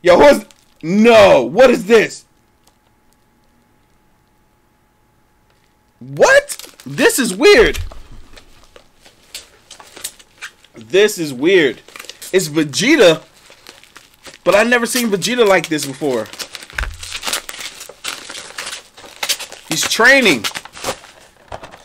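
Cardboard packaging rustles and crinkles in a man's hands.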